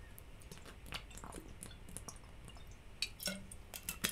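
A man sips a drink.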